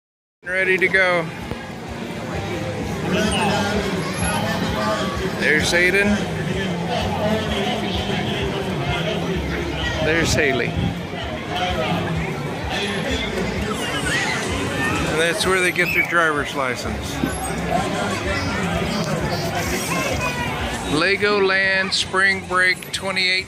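Children chatter and call out excitedly nearby, outdoors.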